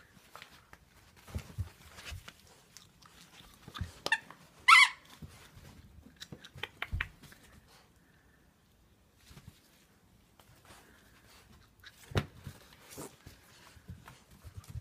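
A dog tugs and bumps about, with soft thumps and rustles close by.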